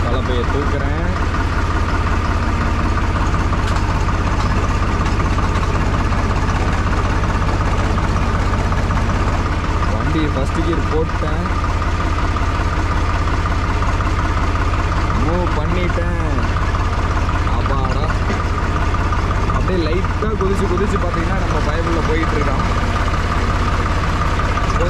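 A tractor engine chugs steadily up close.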